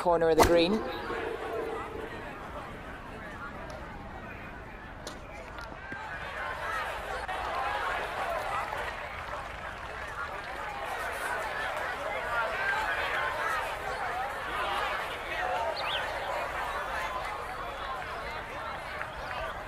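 A large crowd murmurs and cheers outdoors, swelling and then settling.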